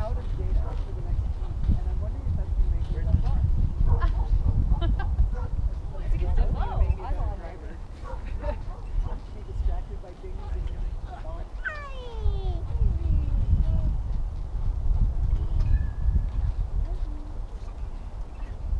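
Wind buffets loudly outdoors throughout.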